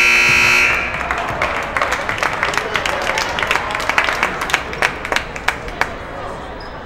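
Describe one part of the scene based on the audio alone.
Players clap their hands sharply.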